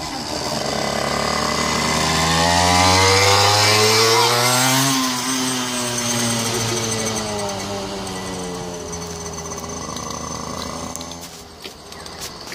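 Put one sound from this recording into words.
A motorcycle engine revs up and roars past, then fades.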